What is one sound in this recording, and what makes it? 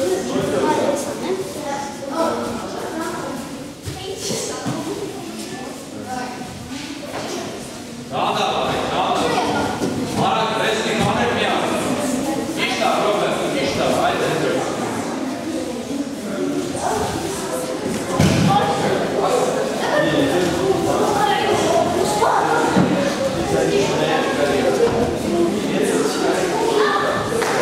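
A man speaks calmly, close by, in a large echoing hall.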